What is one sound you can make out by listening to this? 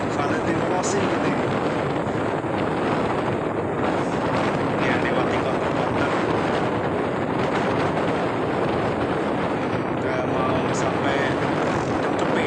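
Wind roars loudly against a moving rider.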